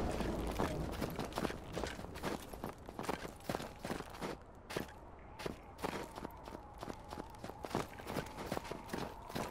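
Footsteps crunch through deep snow at a steady walking pace.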